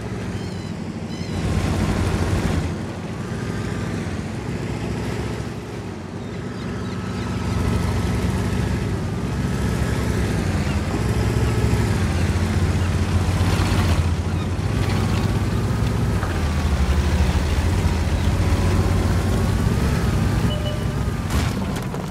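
A heavy tank engine rumbles and roars as the tank drives along.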